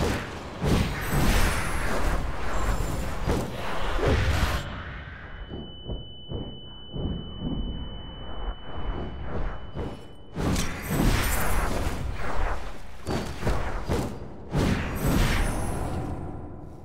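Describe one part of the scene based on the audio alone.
Weapons clash and strike in a fast fight.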